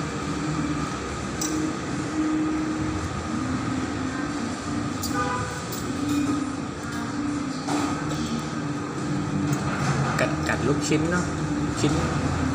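A fork and spoon clink against a bowl.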